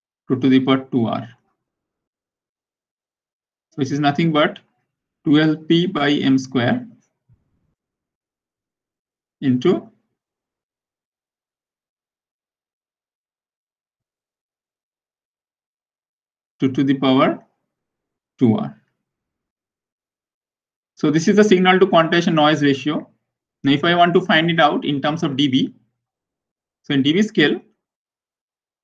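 A man explains calmly through a microphone, in short phrases with long pauses.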